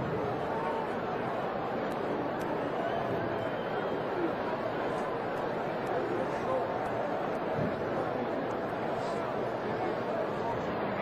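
A large stadium crowd roars steadily all around.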